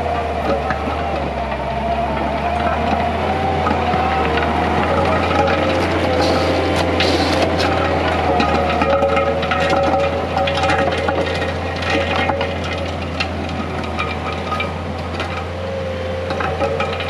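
Steel tracks clank and squeak as a loader drives.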